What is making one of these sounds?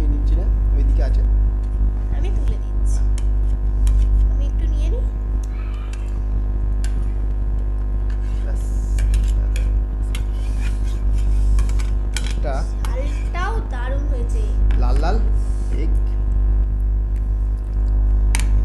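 A metal spoon clinks against plates.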